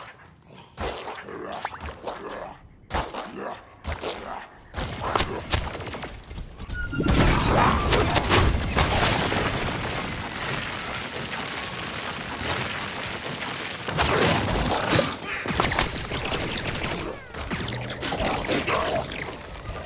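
Shots from a game weapon fire in quick bursts.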